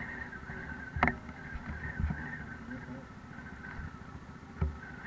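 Stones knock against a quad bike's underside.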